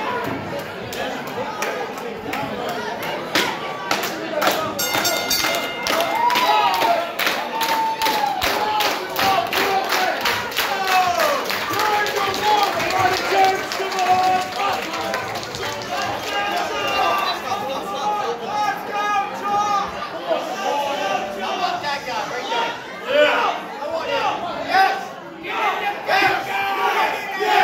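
A crowd of men and women chants and cheers loudly.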